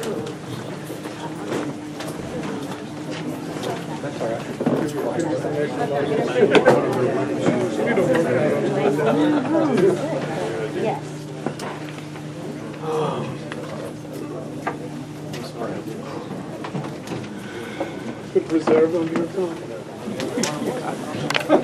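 Several men talk at once, close by and nearby.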